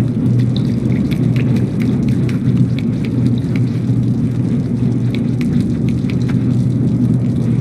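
Small, light footsteps patter quickly across a hard floor.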